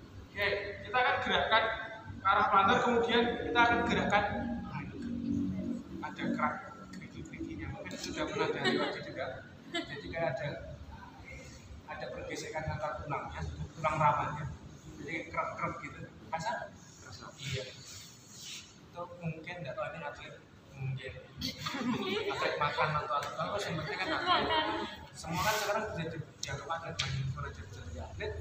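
A young man talks calmly and explains nearby, in a room with some echo.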